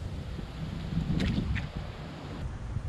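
A fish splashes at the water's surface close by.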